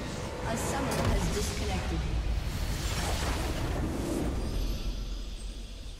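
A deep magical blast booms and rumbles.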